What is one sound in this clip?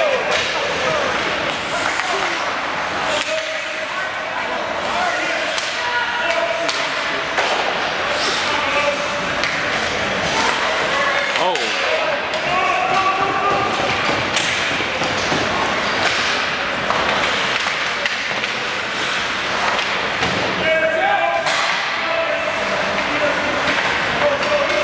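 Spectators chatter and call out in a large echoing arena.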